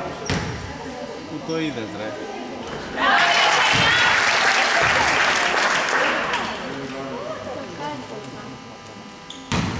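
Spectators talk and call out in a large echoing gym.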